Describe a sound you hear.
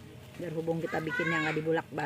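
Soil rattles through a plastic sieve basket.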